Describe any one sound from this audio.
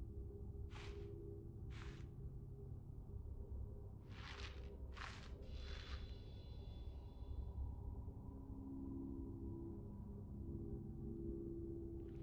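A low electronic drone hums steadily.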